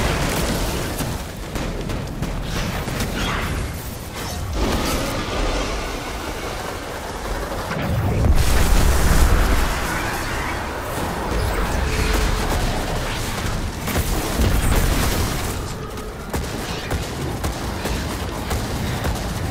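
Guns fire and explosions boom in rapid bursts.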